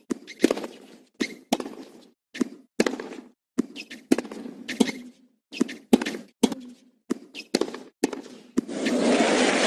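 A tennis ball is hit back and forth with rackets on a hard court.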